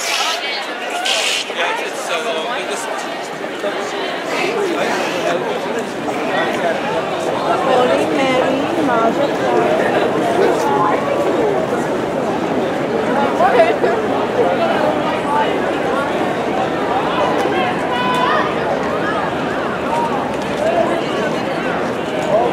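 A crowd of men and women chatter and talk all around, close by.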